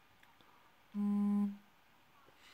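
A short electronic chime sounds once.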